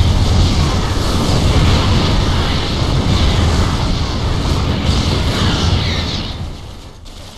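Laser weapons fire in rapid bursts.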